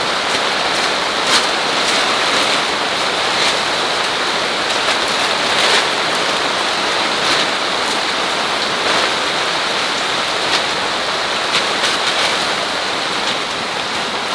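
A plastic sheet rustles and crinkles as it is shaken out.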